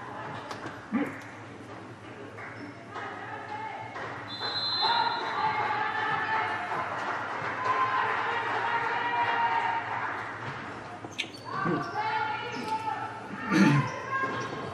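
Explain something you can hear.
A volleyball thumps as it is struck.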